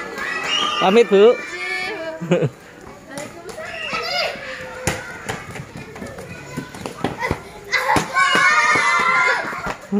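Young children shout and call out excitedly nearby, outdoors.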